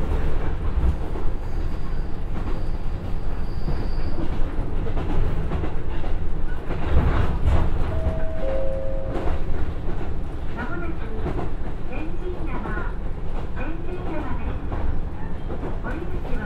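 A diesel railcar engine rumbles steadily as the train runs along the track.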